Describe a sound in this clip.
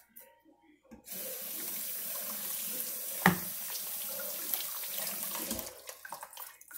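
Tap water runs and splashes into a bowl.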